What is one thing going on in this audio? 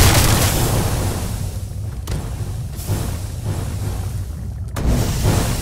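Lava rumbles and hisses steadily.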